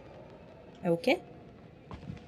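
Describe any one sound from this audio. A young woman makes short vocal sounds into a microphone.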